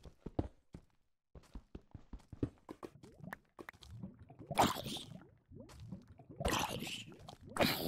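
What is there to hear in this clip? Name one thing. A zombie groans.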